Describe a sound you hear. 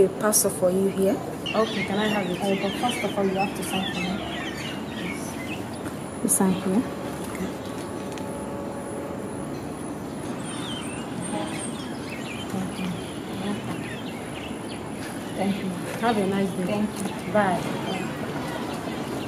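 A young woman speaks calmly up close.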